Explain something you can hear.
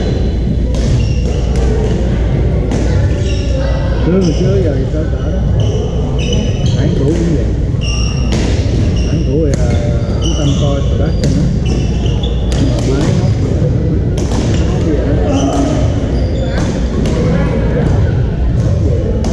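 Paddles smack plastic balls again and again in a large echoing hall.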